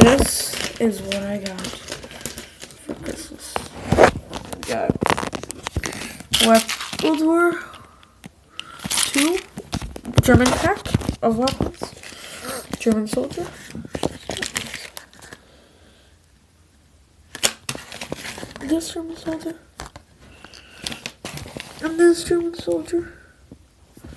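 Plastic bags crinkle and rustle in a boy's hands.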